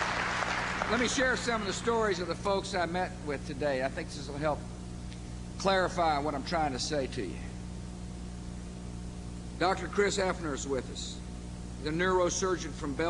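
A middle-aged man speaks firmly into a microphone over loudspeakers.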